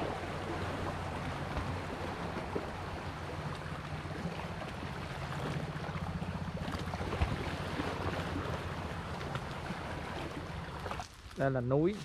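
Gentle waves lap against rocks in the shallows.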